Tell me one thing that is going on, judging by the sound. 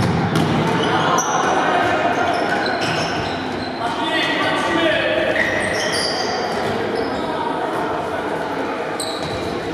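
Young players shout to each other.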